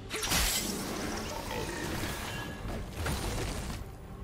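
Spells and blows from a video game fight crackle and thud.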